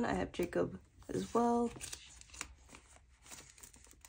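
A card slides out of a plastic sleeve.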